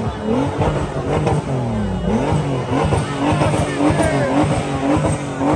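A car engine revs loudly up and down nearby.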